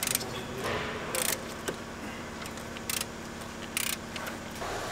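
Metal parts click and clink.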